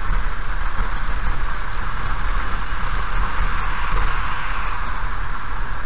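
A heavy truck rumbles past in the opposite direction.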